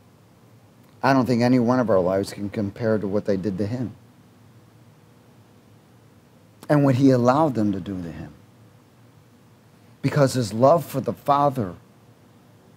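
A middle-aged man speaks with animation into a headset microphone, in pauses.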